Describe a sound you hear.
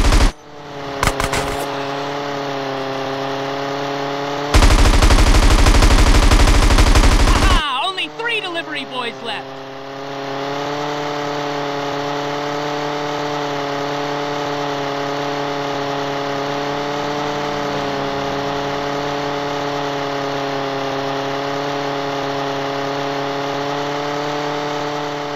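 A small toy plane engine buzzes steadily.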